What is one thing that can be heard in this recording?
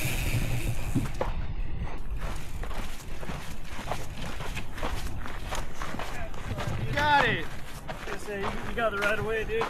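Footsteps crunch on a gravel trail.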